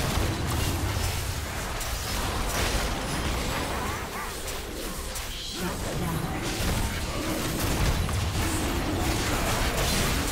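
Game spell effects crackle and boom in a fast fight.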